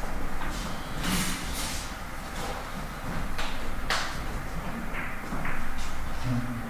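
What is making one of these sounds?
Billiard balls click against each other and the cushions in a quiet hall.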